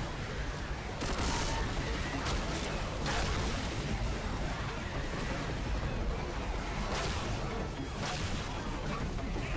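A bat thuds into zombies again and again.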